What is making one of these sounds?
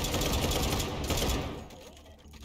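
An automatic gun fires a rapid burst.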